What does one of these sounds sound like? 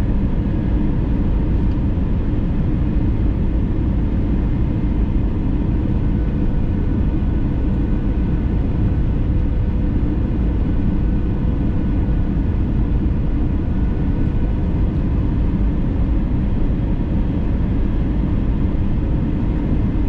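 Jet engines roar steadily inside an airliner cabin, with a low, even rumble.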